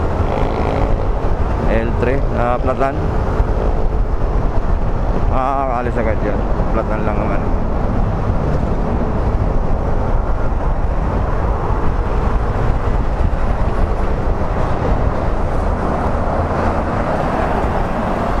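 Wind rushes past the rider at speed.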